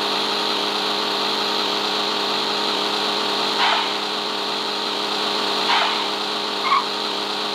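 A sports car engine drones at high speed.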